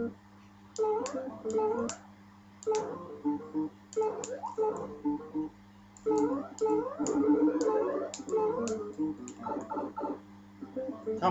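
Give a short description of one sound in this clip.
Short rising electronic jump sounds from a retro video game chirp again and again.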